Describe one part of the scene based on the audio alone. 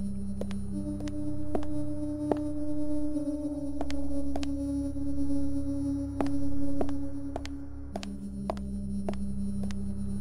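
Footsteps tap steadily on a hard tiled floor.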